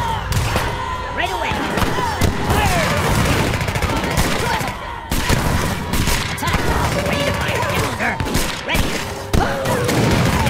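Muskets fire in rapid, overlapping volleys.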